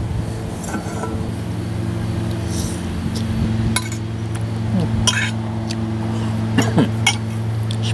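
A spoon clinks against a glass jar.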